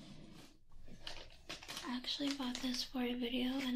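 A plastic bag crinkles close by.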